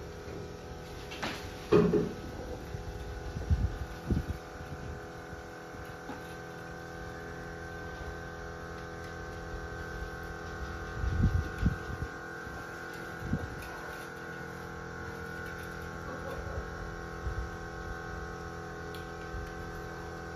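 Wire cage parts rattle and clink as a person handles a cage.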